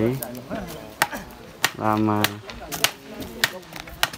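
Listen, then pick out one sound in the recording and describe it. Wet mud slaps and thuds against a wall.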